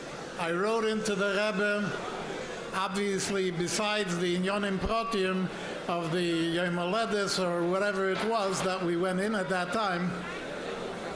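An elderly man sings a melody into a microphone.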